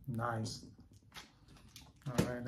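A plastic comic sleeve rustles and taps in a man's hands.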